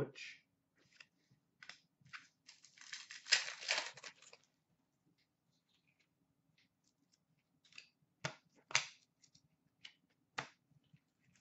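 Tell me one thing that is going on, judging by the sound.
Cards rustle and tap softly as they are handled.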